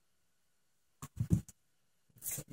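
Metal rods clatter down onto a hollow plastic surface.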